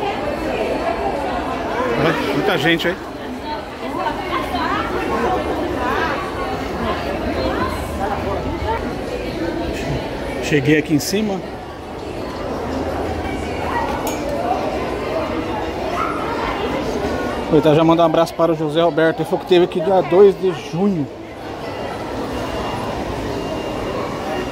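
A crowd chatters all around indoors, with a busy echo.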